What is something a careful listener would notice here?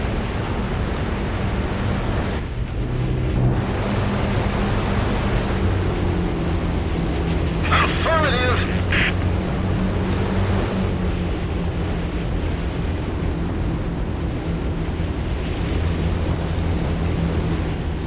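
Several propeller engines drone steadily and loudly.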